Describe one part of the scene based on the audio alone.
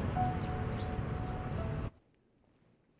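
Monkeys chatter nearby.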